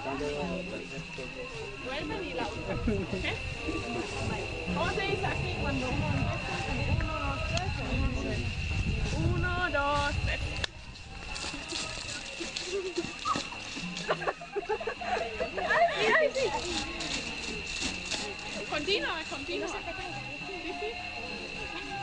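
Children and a young woman talk and laugh close by, outdoors.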